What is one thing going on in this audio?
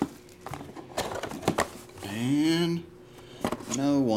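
A cardboard box lid flips open with a soft knock.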